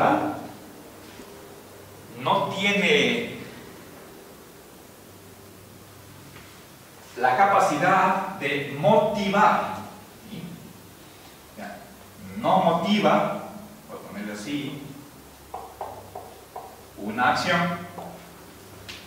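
An older man speaks calmly.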